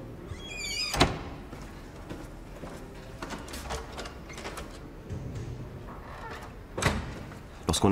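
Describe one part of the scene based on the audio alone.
A man knocks on a door.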